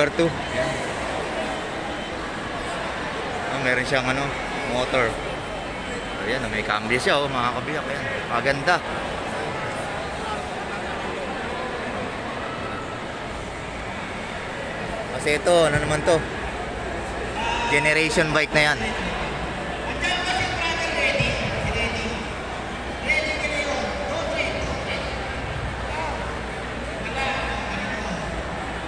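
A crowd murmurs in the distance in a large echoing hall.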